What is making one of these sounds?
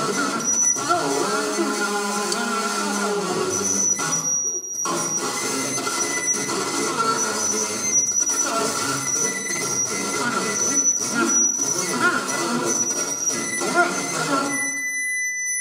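Instrumental music plays through loudspeakers in a large hall.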